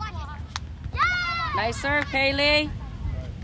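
A girl shouts loudly outdoors.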